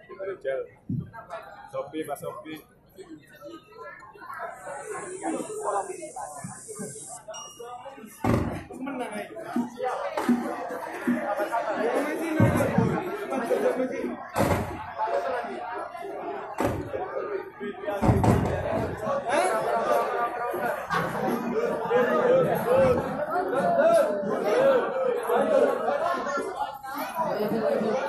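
A crowd of men chants together in a room with some echo.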